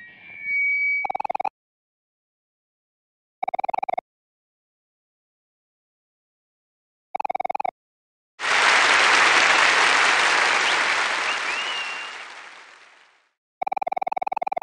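Quick high electronic beeps chatter in short bursts.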